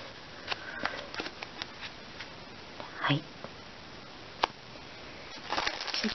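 Hands rustle against a soft ball of yarn.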